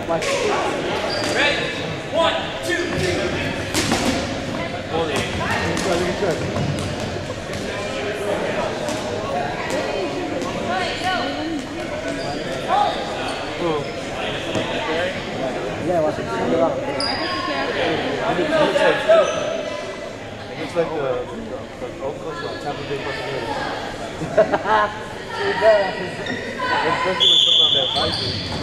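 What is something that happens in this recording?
A crowd of young people shouts and chatters in a large echoing gym.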